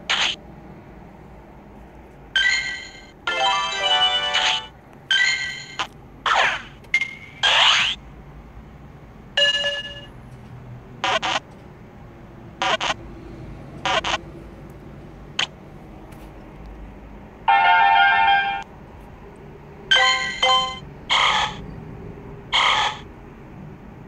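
Bright electronic game chimes and jingles play in short bursts.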